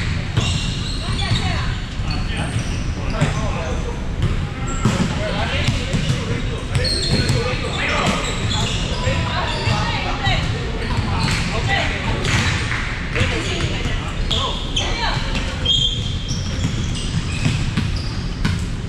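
Young men and women call out and chat across the hall.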